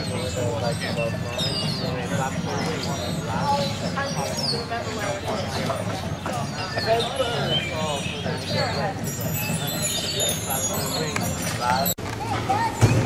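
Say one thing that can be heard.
A group of teenagers chatter outdoors.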